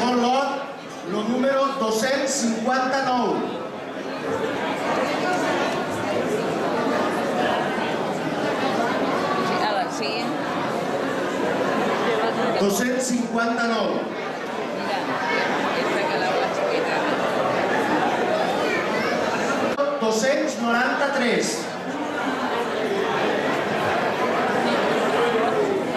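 A crowd of people chatters steadily in the background.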